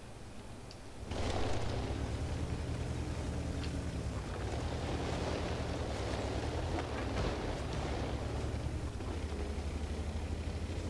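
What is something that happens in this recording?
A tank engine rumbles loudly.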